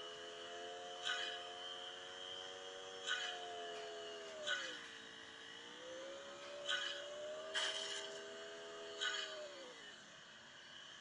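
A racing car engine drones steadily, dips in pitch, rises again and then dies away.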